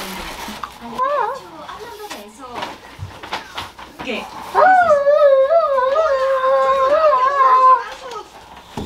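A young girl hums loudly through a cardboard tube, close by, with a hollow, buzzing tone.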